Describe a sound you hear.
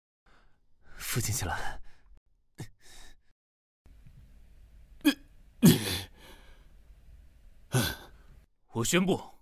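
A young man speaks, close by.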